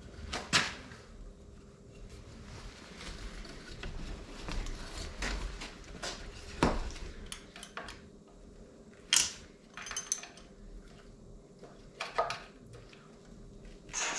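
Plastic parts click and knock as a hand handles a quad bike's handlebar.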